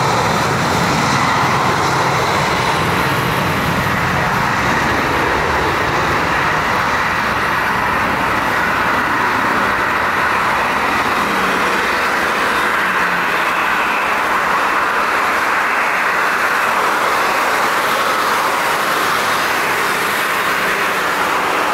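A jet engine roars loudly as an airliner takes off.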